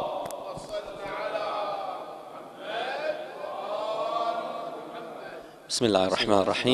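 A crowd of men murmurs and chants together.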